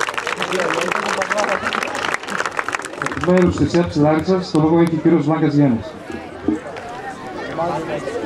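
A crowd of children chatters and cheers outdoors.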